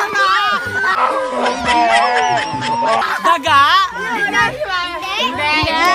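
A young woman shrieks and laughs.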